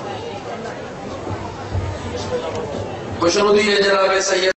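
A younger man chants loudly into a microphone over loudspeakers.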